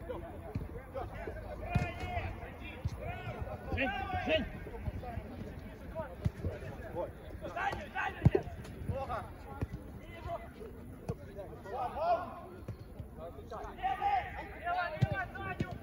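Men shout and call out to each other across an outdoor pitch.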